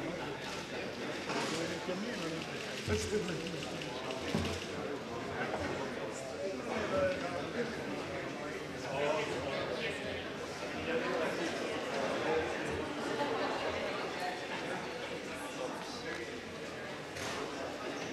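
A crowd of adults murmurs and chats in a large echoing hall.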